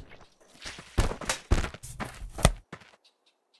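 A spiked mace thuds heavily into a body.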